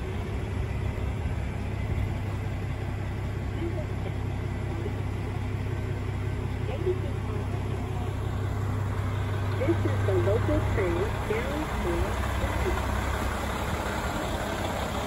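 A diesel train engine idles with a steady low rumble close by.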